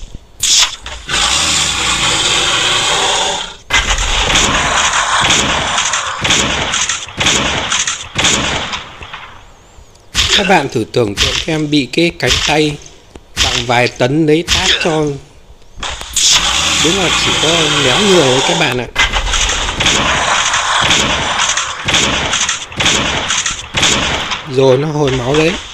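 Heavy blows thud and slash in a fight.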